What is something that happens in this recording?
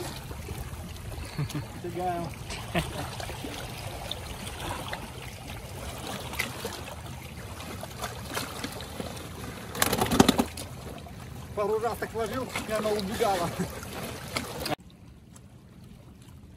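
Shallow water laps and splashes gently.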